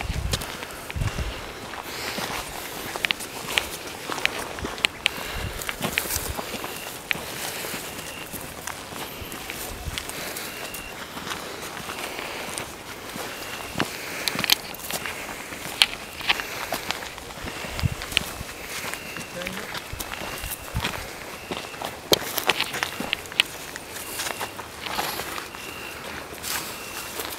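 Footsteps crunch through dry brush and grass outdoors.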